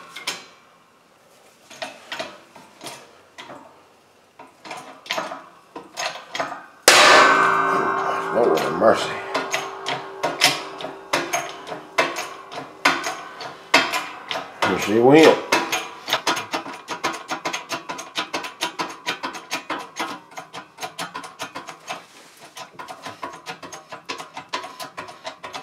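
A slowly pressing machine squeezes an object, which creaks, cracks and pops.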